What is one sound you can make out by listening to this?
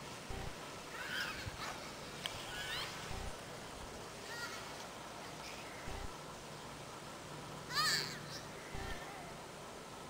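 Young children shout and squeal happily in the distance.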